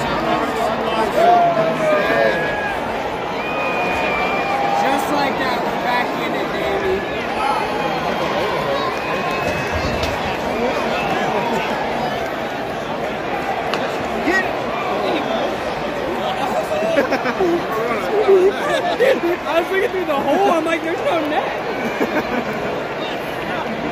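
A large crowd chatters and cheers in a big echoing arena.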